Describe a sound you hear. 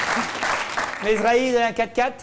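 A woman speaks brightly into a microphone.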